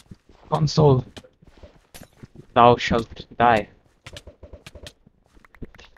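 Quick game sword blows land with short sharp thuds.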